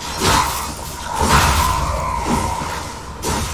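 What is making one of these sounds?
A magical blast bursts with a crackling impact.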